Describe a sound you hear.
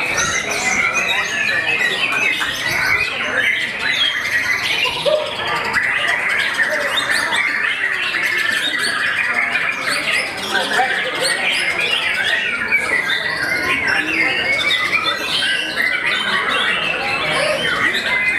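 A songbird sings loudly and continuously, with rapid, shrill chirps and whistles.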